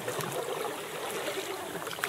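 Kayak paddles dip and splash in calm water.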